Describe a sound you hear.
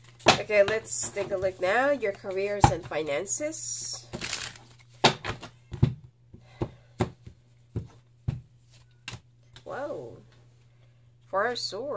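Cards tap down onto a wooden table.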